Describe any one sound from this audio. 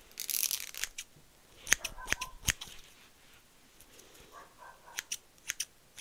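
Scissors snip close by.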